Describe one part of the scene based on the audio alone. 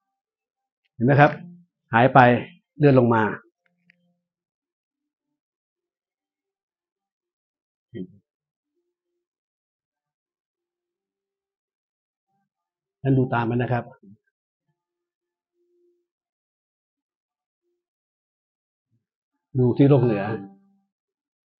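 An elderly man speaks calmly into a microphone, in short bursts with long pauses.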